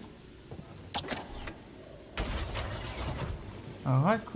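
A heavy metal door slides open with a mechanical whoosh.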